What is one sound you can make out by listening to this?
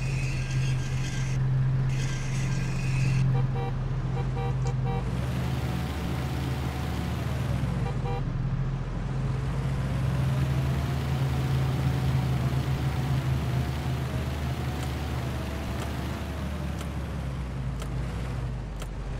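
A truck engine rumbles steadily and revs.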